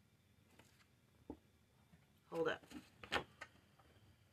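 Book pages rustle and flip.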